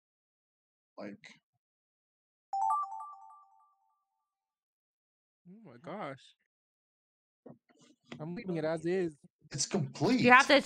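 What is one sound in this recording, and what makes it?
A young woman speaks with animation into a microphone, close by.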